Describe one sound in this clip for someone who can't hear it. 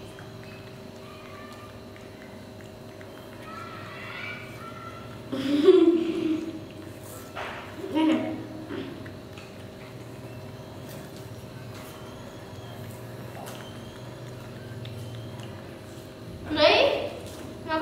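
A baby monkey chews food with soft smacking sounds.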